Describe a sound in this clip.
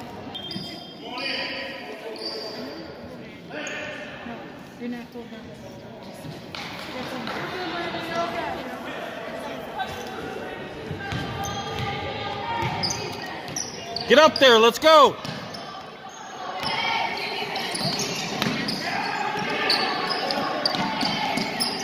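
Spectators chatter nearby in a large echoing gym.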